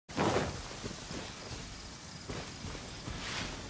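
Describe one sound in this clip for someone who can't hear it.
Footsteps rustle through grass at a quick pace.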